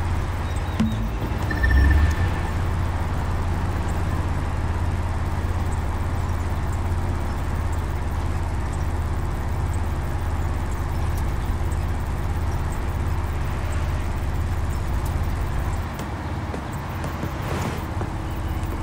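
A sports car engine hums steadily at high speed.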